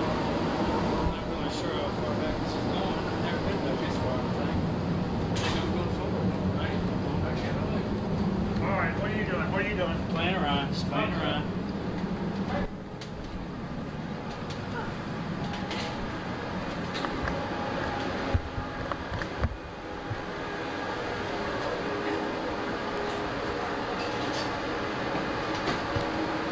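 Footsteps walk along a hard floor.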